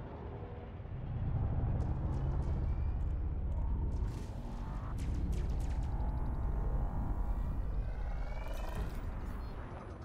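A spaceship engine roars loudly as the ship boosts out of a station.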